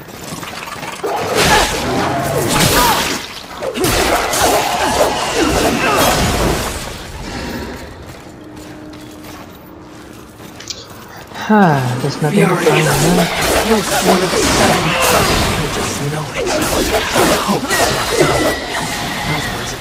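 A whip cracks and slashes through the air in a fight.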